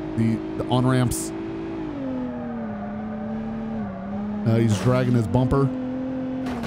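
A car engine hums steadily and drops in pitch as the car slows.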